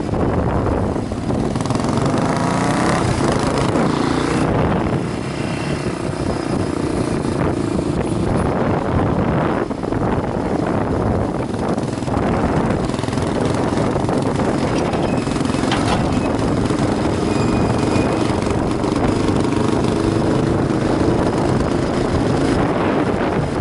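Wind buffets loudly against a helmet.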